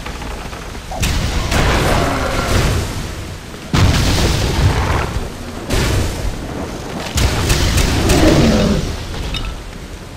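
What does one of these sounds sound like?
Fire spells whoosh and roar in bursts.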